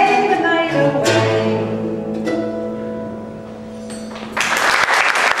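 A plucked string instrument plays a melody and rings out.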